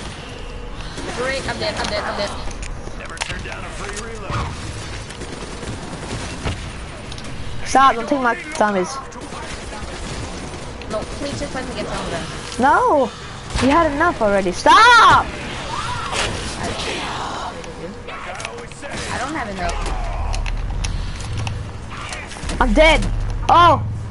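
A boy talks excitedly into a close microphone.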